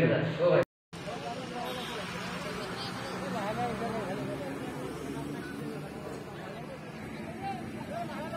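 A crowd of men murmurs and talks outdoors.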